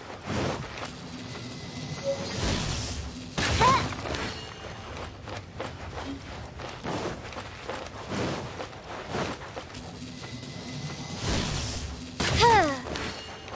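A bow twangs.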